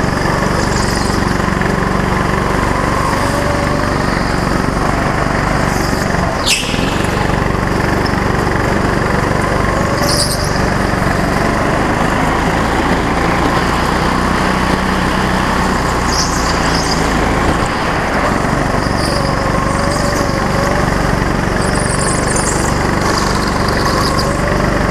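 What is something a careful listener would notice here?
A go-kart engine roars loudly and steadily up close.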